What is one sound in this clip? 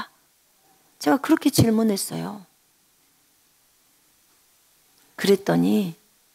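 A middle-aged woman speaks calmly into a headset microphone, pausing between phrases.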